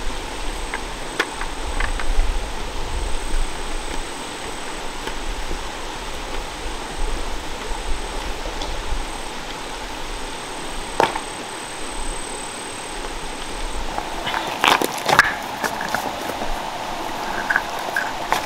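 A stream flows and babbles steadily nearby.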